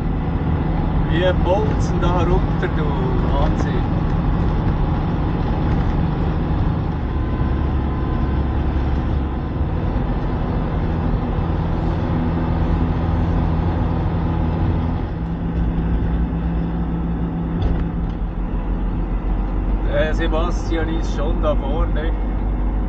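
Tyres rumble over a rough road.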